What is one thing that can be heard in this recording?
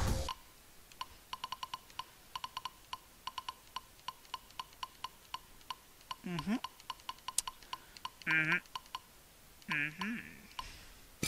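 Short menu clicks tick rapidly as letters change.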